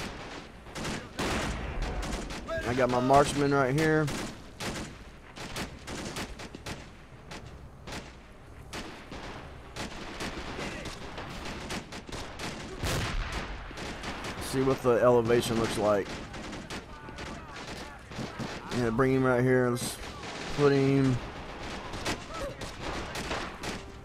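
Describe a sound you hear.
Gunshots crack repeatedly in a distant battle.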